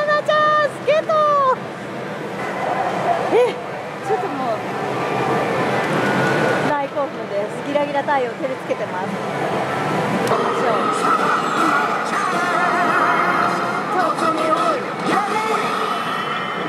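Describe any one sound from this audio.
A young woman talks cheerfully and excitedly close by.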